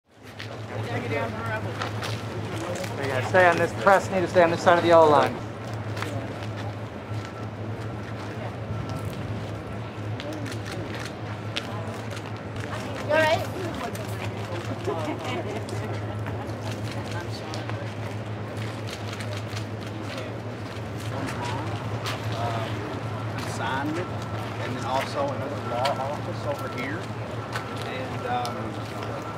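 A crowd of men and women talks outdoors.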